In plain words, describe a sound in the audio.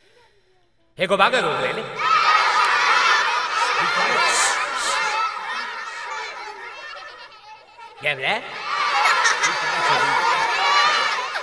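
A crowd of children laughs loudly.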